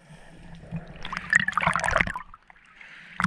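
A swimmer's legs kick and churn the water, heard from underwater.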